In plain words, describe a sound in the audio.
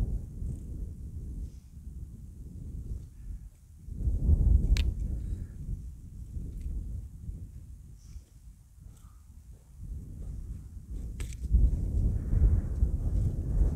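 A hiker's footsteps crunch on stony ground.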